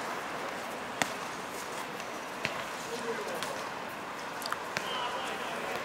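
A ball is kicked with sharp thuds outdoors.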